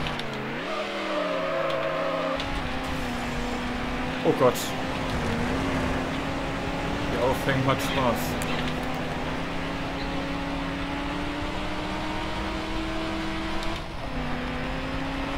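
A racing car engine drones steadily, its pitch rising and falling with the gears.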